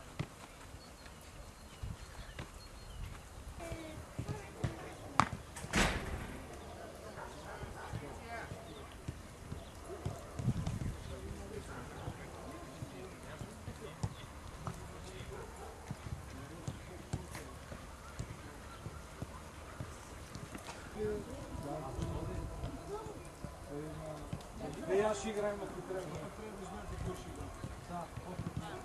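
Footballs thud as they are kicked on grass.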